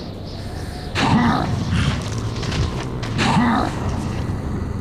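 A monster growls deeply nearby.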